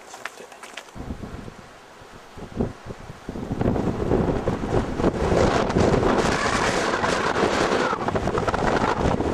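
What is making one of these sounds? Strong wind rumbles and gusts outdoors.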